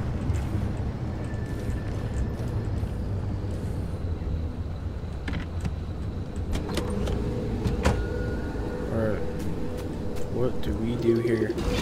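A car engine rumbles steadily at low speed.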